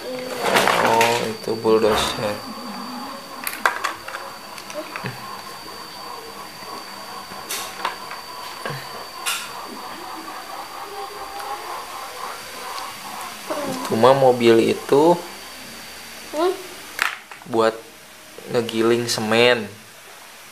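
Plastic toys clack and click as they are handled.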